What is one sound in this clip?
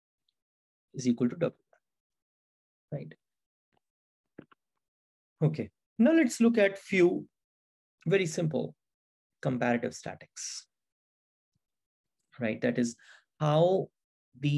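A man speaks calmly into a close microphone, explaining with pauses.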